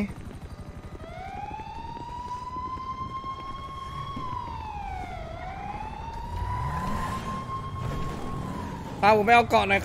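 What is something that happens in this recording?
A siren wails up and down nearby.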